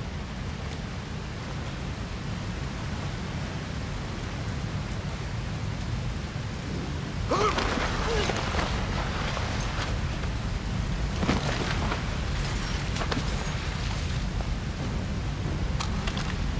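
A waterfall roars steadily and deeply nearby.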